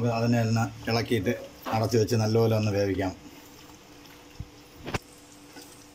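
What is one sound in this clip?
A spoon scrapes and stirs a thick stew in a metal pot.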